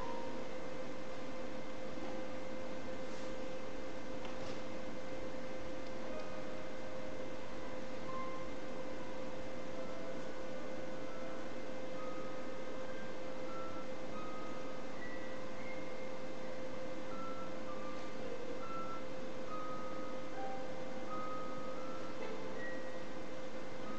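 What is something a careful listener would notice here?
A violin plays soft, sparse held notes.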